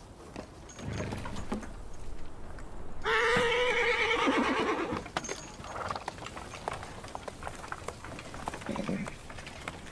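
Wooden cart wheels creak and rattle as the cart rolls along.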